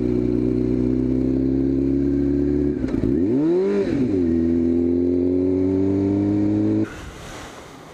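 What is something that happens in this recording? A motorcycle engine drones steadily while riding, briefly dropping and rising in pitch as the gear changes.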